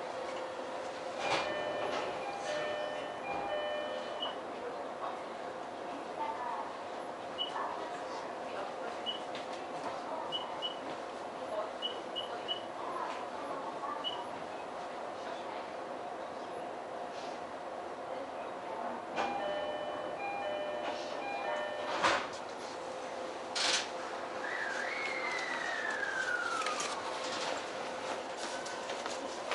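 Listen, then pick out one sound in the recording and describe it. A stopped train's equipment hums steadily.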